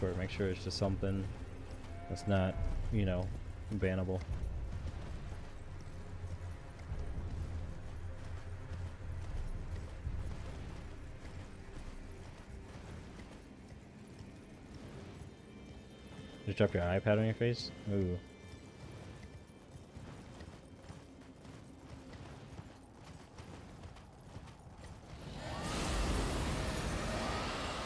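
A horse gallops steadily over snow.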